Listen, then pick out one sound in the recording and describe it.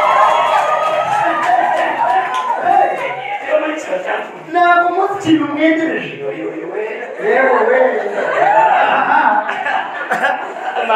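A man speaks with animation through a microphone and loudspeakers.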